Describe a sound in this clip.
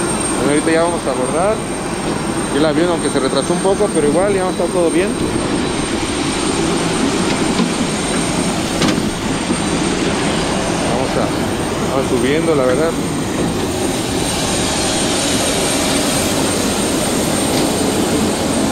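Jet engines roar steadily outdoors.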